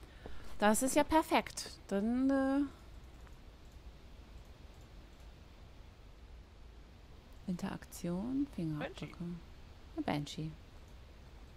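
A woman speaks with animation into a microphone, close by.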